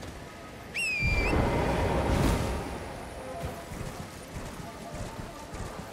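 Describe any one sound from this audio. A horse's hooves thud on the ground.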